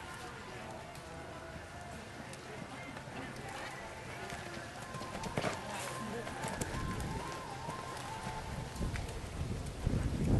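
Hooves thud on soft sand as a horse canters.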